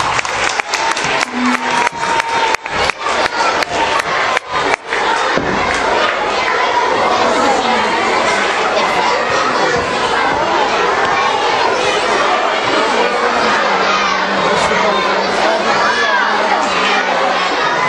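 A crowd of children chatters loudly in a large echoing hall.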